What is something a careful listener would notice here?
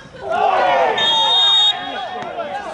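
A referee's whistle blows one short, sharp blast.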